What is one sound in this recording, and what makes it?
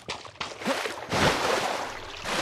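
Something plunges into water with a big splash.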